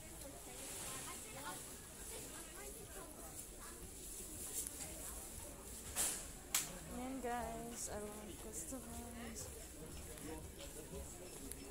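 A crowd of shoppers murmurs indoors in the distance.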